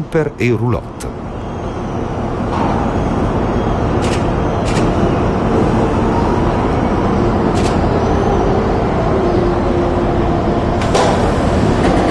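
A diesel high-speed train approaches on the rails with a low rumble.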